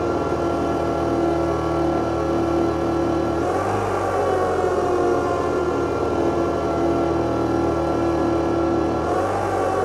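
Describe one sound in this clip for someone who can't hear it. Electronic music plays loudly through speakers, with a steady pulsing beat and droning tones.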